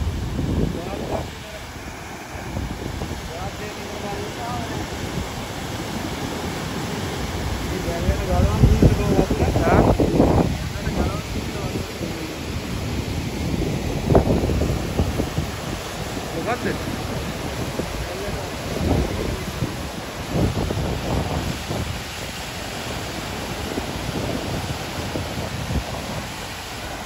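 Water roars steadily as it pours over a spillway.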